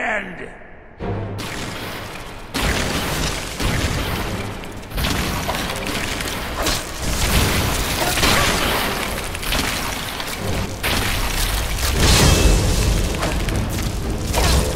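Weapons clash and magic crackles in a loud, busy fight.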